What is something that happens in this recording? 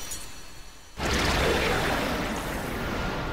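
A blade clangs against metal with a sharp ring.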